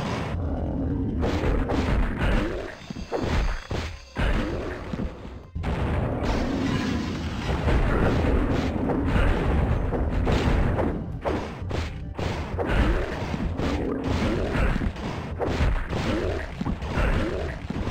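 Monsters growl and roar.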